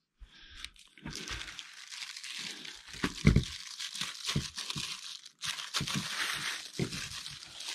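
Plastic wrap crackles as it is handled.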